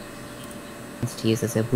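A man speaks briefly into a headset microphone.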